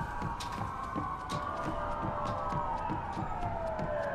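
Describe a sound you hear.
Footsteps run quickly across a wooden deck.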